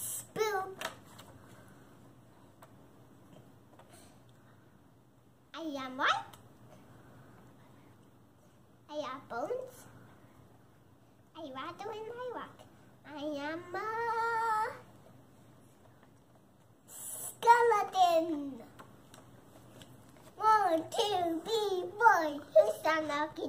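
A young girl reads aloud close by, in short phrases with pauses.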